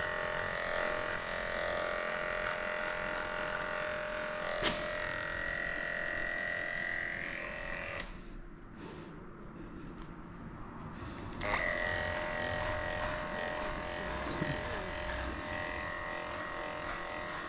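Electric clippers buzz steadily, stop briefly, then start again.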